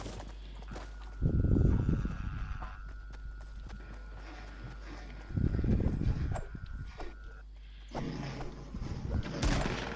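A pickaxe swings through the air with a whoosh.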